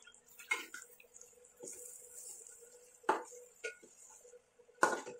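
Food sizzles softly in a pan.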